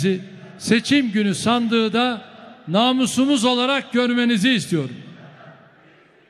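A large crowd chants together in a big echoing hall.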